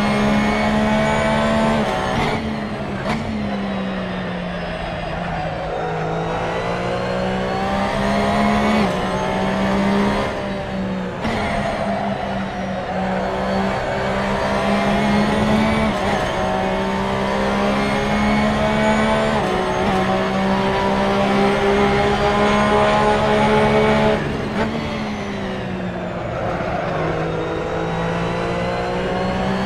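A racing car engine roars loudly, rising and falling in pitch as it shifts gears.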